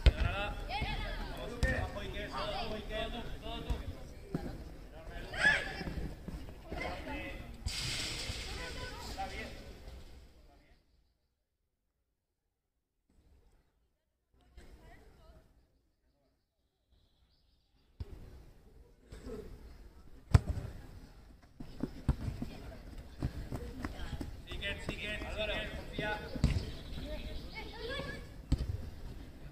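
A football is kicked with dull thuds.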